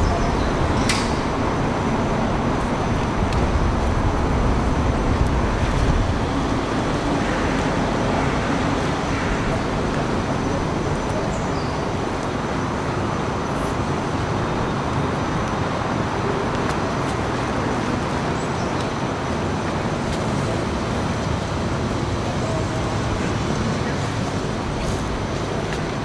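A classical guitar is plucked.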